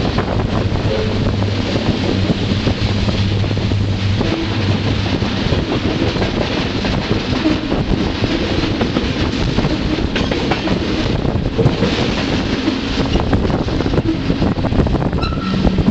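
Wind buffets loudly past an open car window.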